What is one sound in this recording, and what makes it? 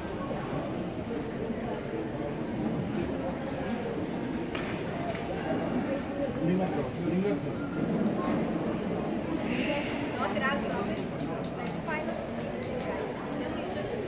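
A crowd murmurs and chatters throughout a large echoing hall.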